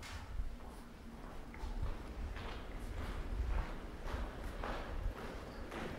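Footsteps tap on a hard floor in a large echoing hall.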